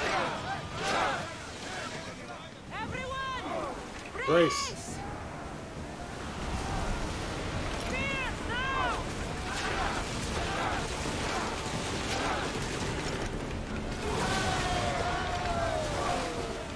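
Water rushes and splashes against ship hulls.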